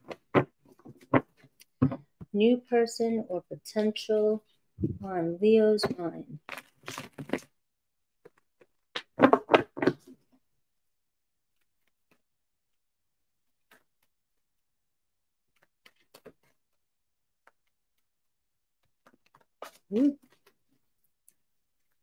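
Playing cards shuffle and slap together.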